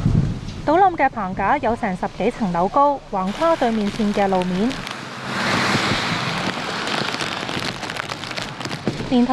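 Strong wind roars in gusts outdoors.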